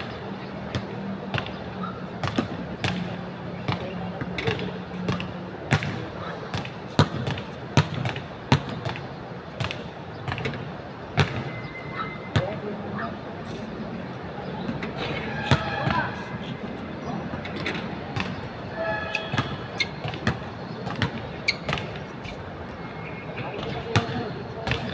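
A basketball bounces repeatedly on a hard outdoor court.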